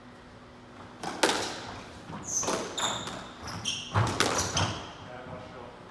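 A squash ball smacks hard against the walls in an echoing court.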